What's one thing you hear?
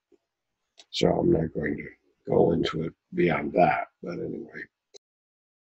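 An elderly man speaks calmly and clearly, close up.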